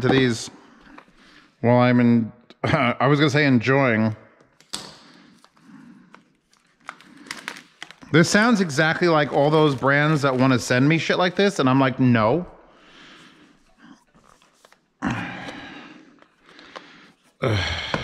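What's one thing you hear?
A cardboard box is handled and opened.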